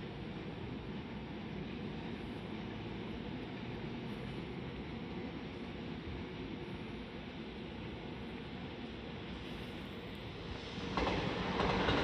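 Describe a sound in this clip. A train rumbles slowly along the tracks with a low steady hum.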